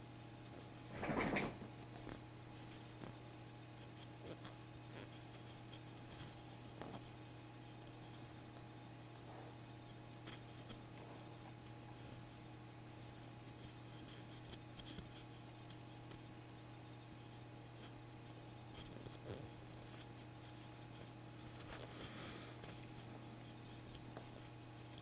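A small plastic box clicks and taps faintly as it is turned in a hand.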